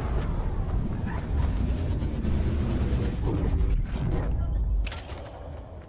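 Wind rushes past steadily during a glide.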